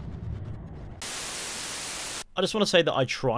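Loud static hisses briefly.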